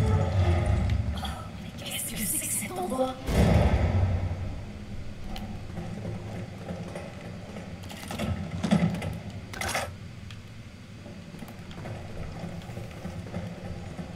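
Footsteps clang softly on a metal grating.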